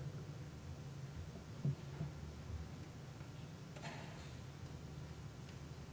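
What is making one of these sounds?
Communion trays clink softly as they are handed out.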